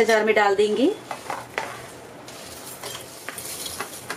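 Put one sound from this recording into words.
A metal spoon scrapes spices into a metal bowl.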